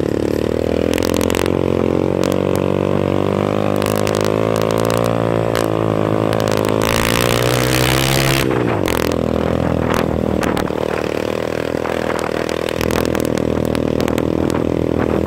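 Another small motorcycle approaches and rides past.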